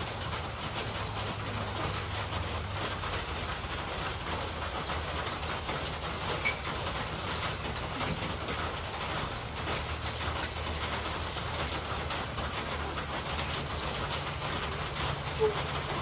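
Chickens scratch and peck among dry leaves close by.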